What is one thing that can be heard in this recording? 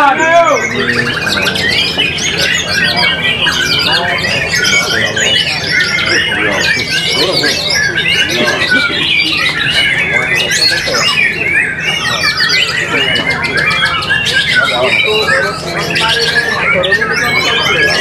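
A songbird sings loud, varied, fast warbling phrases close by.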